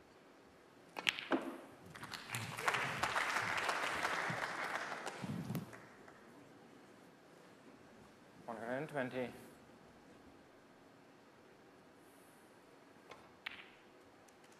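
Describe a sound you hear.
Snooker balls click sharply together.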